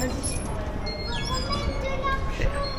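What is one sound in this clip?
A ticket gate beeps.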